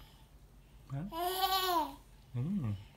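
A baby squeals with delight.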